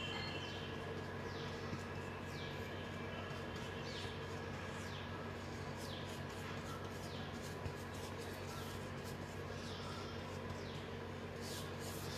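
A brush dabs and scrapes softly on a rough surface.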